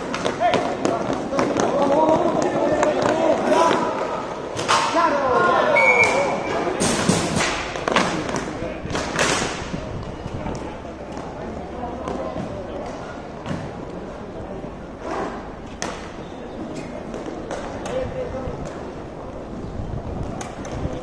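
Inline skate wheels roll and scrape across a hard floor.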